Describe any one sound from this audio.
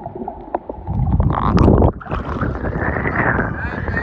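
Water splashes at the surface.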